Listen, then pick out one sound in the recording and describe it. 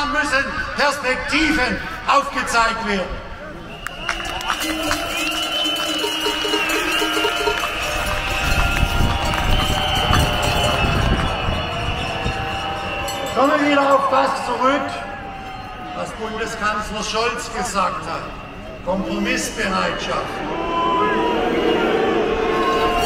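Music plays loudly over outdoor loudspeakers from a stage.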